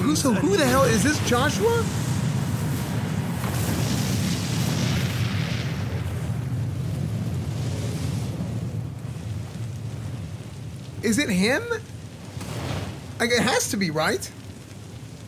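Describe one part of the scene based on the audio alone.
A man talks with animation into a microphone close by.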